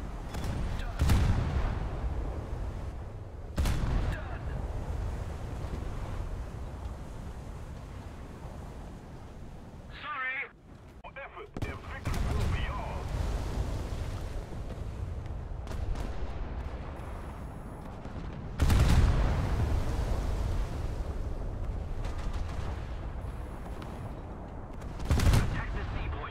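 Heavy naval guns fire with deep booming blasts.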